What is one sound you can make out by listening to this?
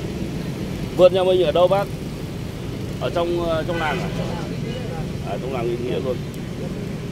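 A man talks close by in short bursts.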